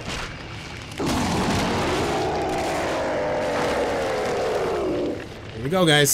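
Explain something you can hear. A creature lets out a long, deep, wavering roar.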